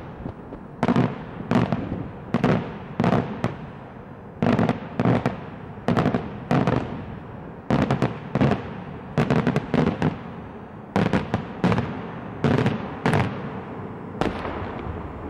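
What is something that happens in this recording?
Fireworks shells burst in loud, echoing bangs, one after another.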